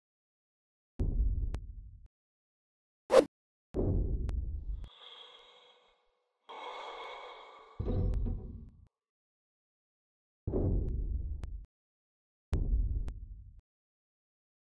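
Heavy footsteps thud on a metal floor.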